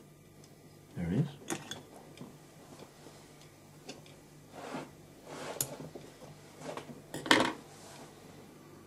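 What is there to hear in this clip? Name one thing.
Small tools tap and click against a metal vise.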